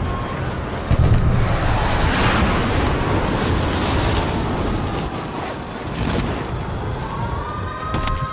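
Wind rushes loudly past a falling parachutist.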